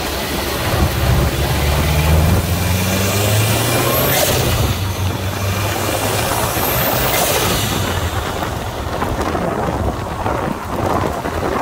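Water sprays with a hissing sound.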